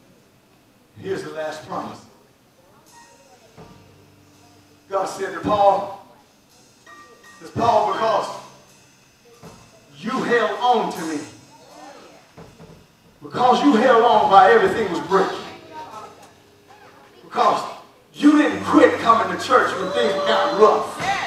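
A man preaches with animation through a microphone, in short bursts with pauses, heard in a large echoing hall.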